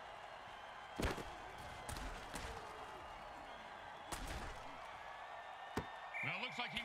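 Armoured players collide with heavy thuds.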